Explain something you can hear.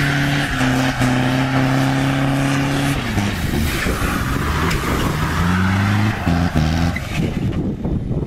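Tyres screech loudly on the road.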